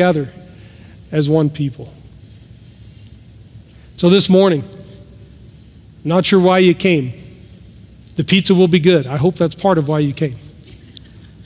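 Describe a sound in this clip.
A middle-aged man speaks with animation into a microphone in an echoing hall, pausing between phrases.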